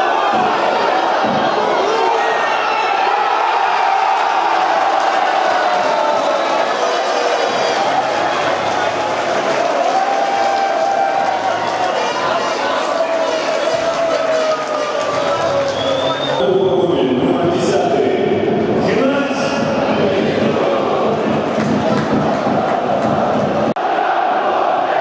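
A crowd cheers and chants loudly in a large open stadium.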